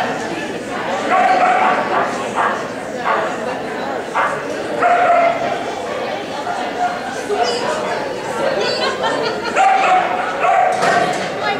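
A dog's paws thump on a wooden ramp.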